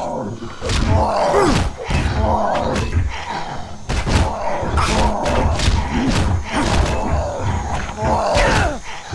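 A metal pipe strikes a body with heavy, wet thuds again and again.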